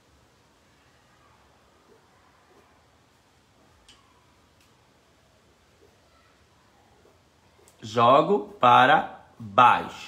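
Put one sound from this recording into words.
A paintbrush brushes softly across cloth.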